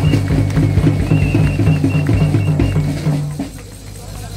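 A band plays music loudly through outdoor loudspeakers.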